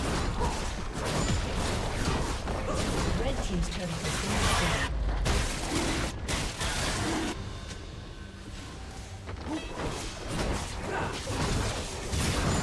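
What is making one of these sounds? Fantasy combat effects crackle, clash and burst rapidly.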